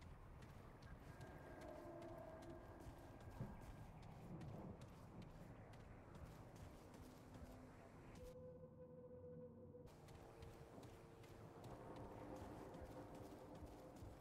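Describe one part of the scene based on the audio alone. Footsteps crunch on loose ground.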